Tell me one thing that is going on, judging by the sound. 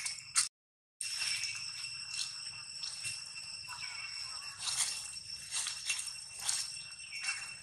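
Dry leaves rustle as monkeys shift about on the ground.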